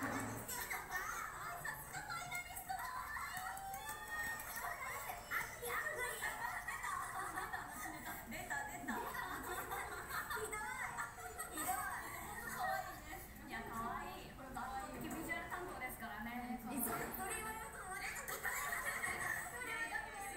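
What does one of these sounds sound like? Young women talk and laugh with animation through microphones.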